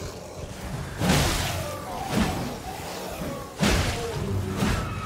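A large blade whooshes through the air in heavy swings.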